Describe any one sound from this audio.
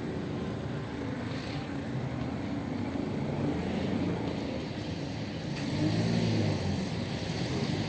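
Car engines idle and rumble in slow traffic close by.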